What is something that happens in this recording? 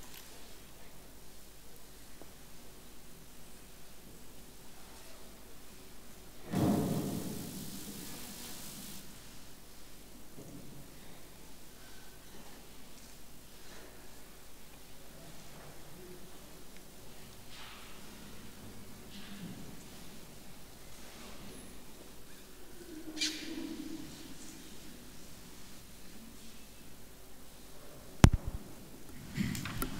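A man speaks quietly in a large echoing hall.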